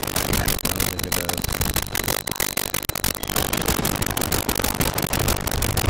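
Rapid gunfire rattles amid loud explosions.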